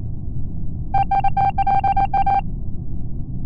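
A game plays a quick, fluttering electronic tone.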